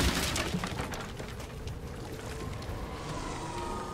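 A small fire crackles and hisses.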